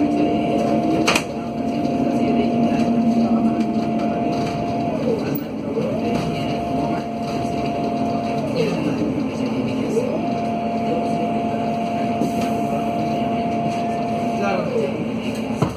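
A bus rumbles along a city street.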